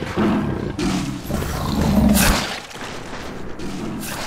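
A fiery blast whooshes and crackles.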